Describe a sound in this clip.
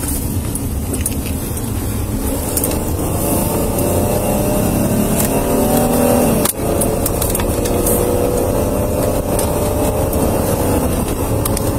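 A car engine hums and rises in pitch as the car speeds up.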